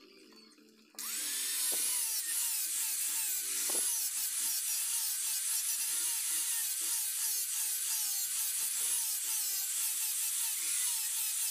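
An angle grinder whines as it sands a wooden knife handle.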